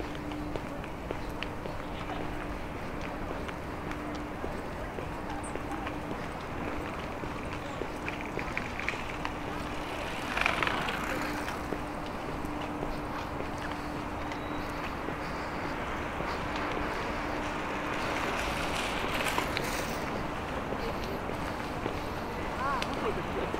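Footsteps crunch steadily on a paved path outdoors.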